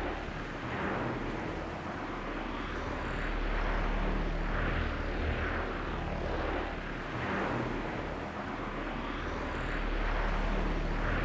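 Wind rushes steadily past a glider in flight, swelling and easing.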